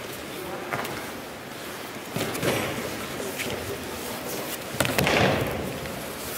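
Feet shuffle and slide on a mat.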